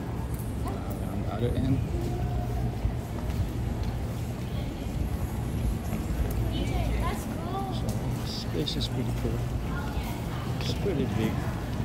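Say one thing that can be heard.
Men and women chatter faintly in the distance.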